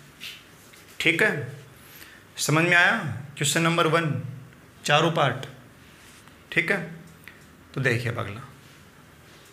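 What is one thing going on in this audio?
A man lectures calmly into a clip-on microphone, in short bursts with pauses.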